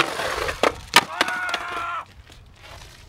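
A skateboard clatters and slaps on concrete.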